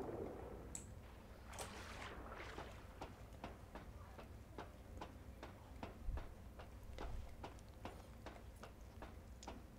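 Boots and hands clank steadily on metal ladder rungs.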